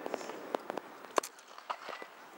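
A cricket bat hits a cricket ball with a sharp crack.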